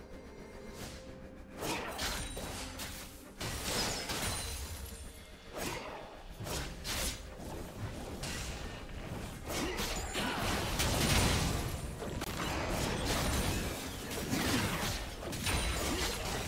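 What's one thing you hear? Spell effects burst and crackle in a fast game battle.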